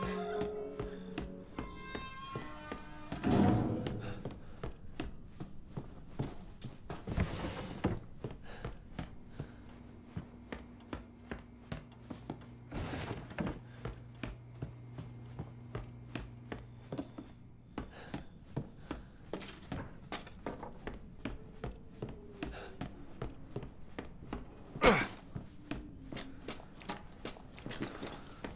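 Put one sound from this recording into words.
Footsteps walk steadily across wooden floorboards.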